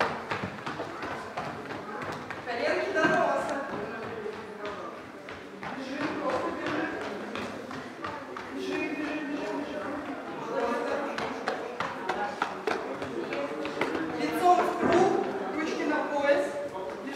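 A woman speaks loudly and calmly in an echoing hall.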